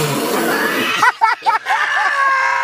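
A man laughs loudly close by.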